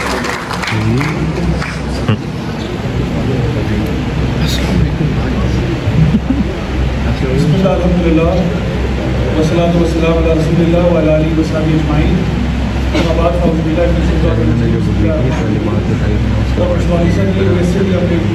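A man speaks calmly into a microphone over loudspeakers in an echoing hall.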